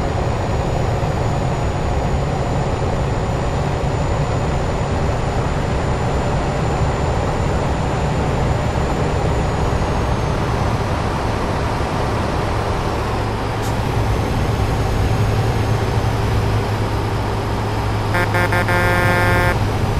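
Tyres hum and roar on a road.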